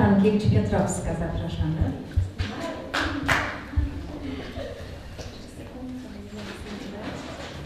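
A woman speaks into a microphone over loudspeakers in an echoing hall.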